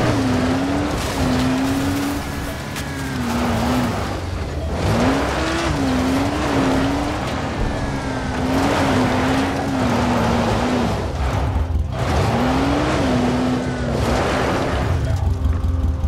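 A buggy engine roars and revs up and down.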